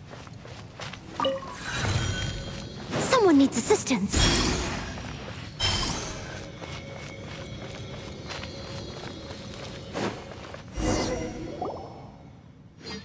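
Footsteps run quickly over stony ground.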